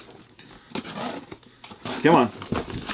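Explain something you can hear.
A knife slices through cardboard packing tape.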